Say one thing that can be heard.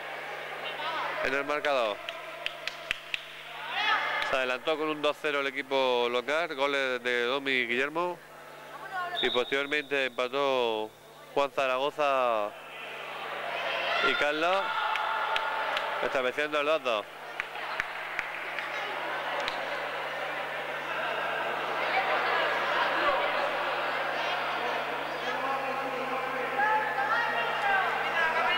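A ball thuds and bounces in an echoing hall.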